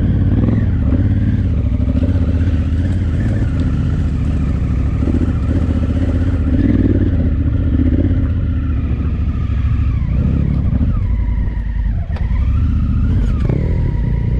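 A motorcycle engine rumbles steadily and revs up and down close by.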